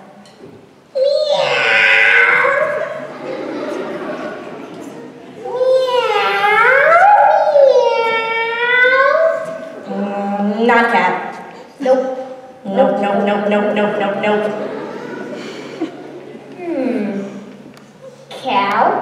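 A young woman speaks theatrically with a swooping voice in a large echoing hall.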